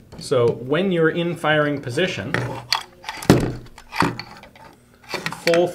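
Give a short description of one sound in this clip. Metal gun parts click and scrape as they slide together.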